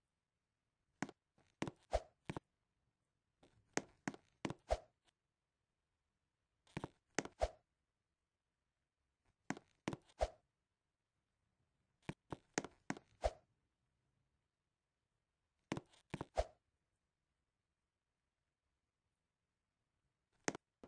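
Someone knocks on a wooden door in quick bursts of several knocks.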